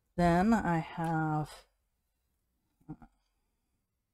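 A woman speaks calmly and close to a microphone.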